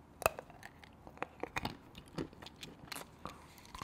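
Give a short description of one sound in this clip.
A man bites and crunches a chocolate shell close to the microphone.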